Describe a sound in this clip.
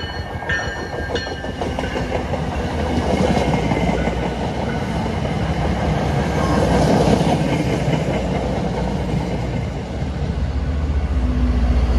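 A train rumbles and clatters past close by.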